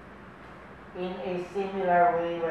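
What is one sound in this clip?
An elderly man chants a prayer slowly, heard close by.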